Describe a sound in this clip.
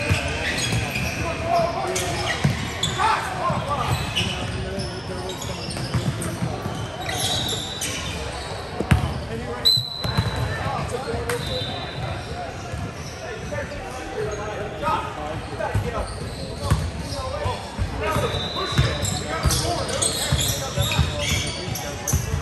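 A crowd of spectators chatters in the background.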